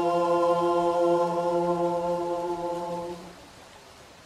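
A choir of young voices sings and holds a steady chord.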